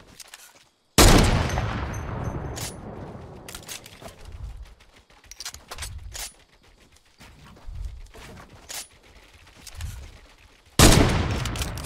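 A sniper rifle fires with a loud crack that rings out and fades.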